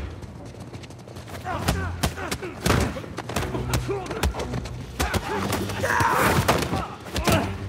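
Fists thud against bodies in a scuffle.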